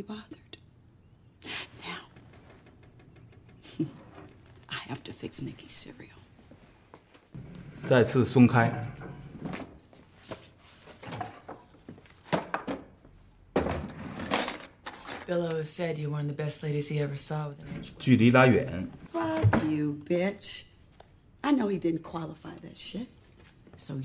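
A young woman speaks calmly and firmly nearby.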